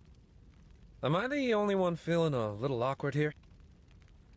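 A man speaks in a low, questioning voice, close by.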